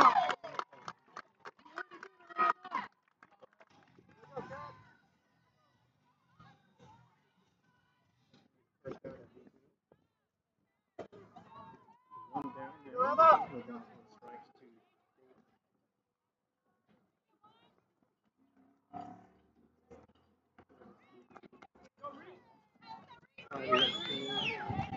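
Young women shout and cheer outdoors, some way off.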